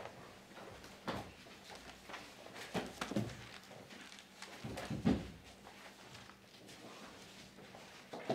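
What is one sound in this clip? Book pages rustle and turn.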